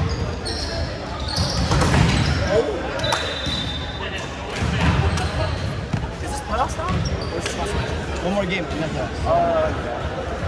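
Young men call out and chatter across an echoing hall.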